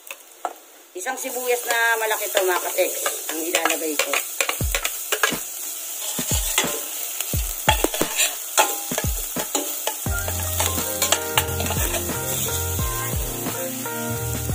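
Onions sizzle in hot oil.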